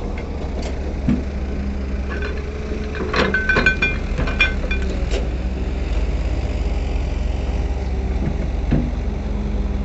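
Metal parts clank and squeak as an excavator arm moves.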